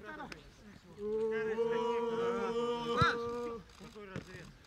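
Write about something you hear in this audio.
A group of young men cheer and shout together outdoors.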